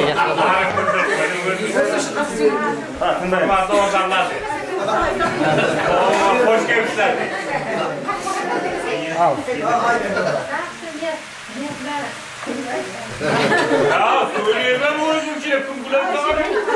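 Several women chat and laugh close by, overlapping one another.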